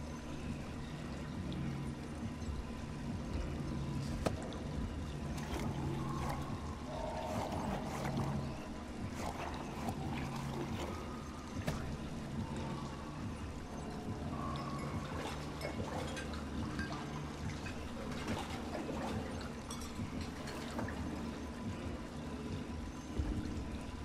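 Dishes clink and knock against each other.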